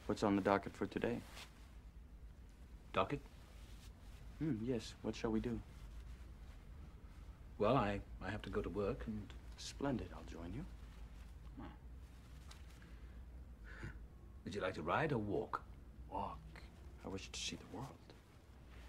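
A young man speaks calmly.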